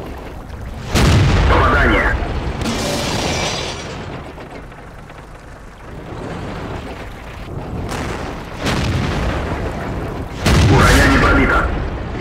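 A tank cannon fires with a loud, echoing boom.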